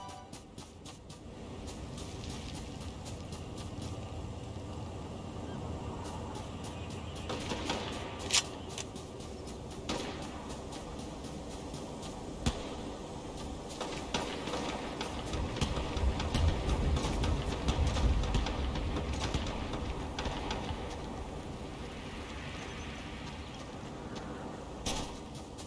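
A character's footsteps patter quickly on the ground.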